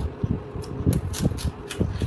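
An onion crunches as a man bites into it.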